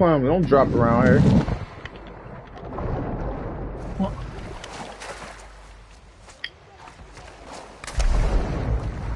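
Water bubbles and gurgles in a muffled way underwater.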